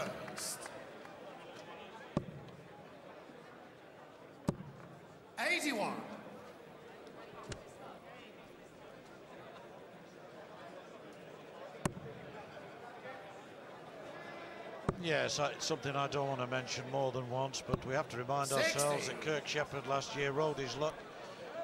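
A large crowd murmurs in a big echoing hall.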